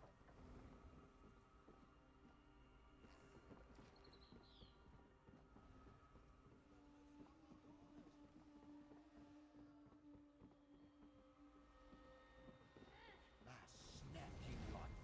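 Footsteps run across a wooden floor.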